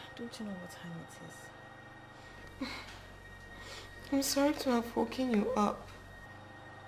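A young woman speaks tearfully and pleadingly, close by.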